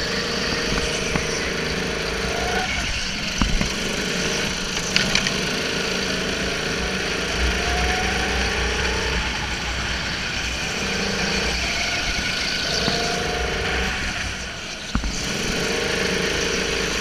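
A go-kart engine whines loudly close by, rising and falling in pitch as it speeds up and slows down.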